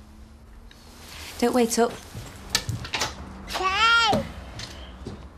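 A woman sings in a clear, soaring operatic voice.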